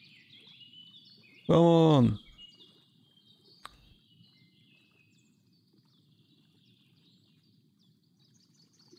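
Water laps gently against a boat and a dock.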